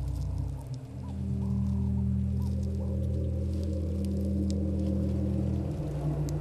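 An elephant snaps twigs while feeding.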